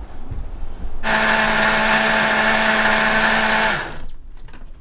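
A blender motor whirs loudly and steadily, then stops.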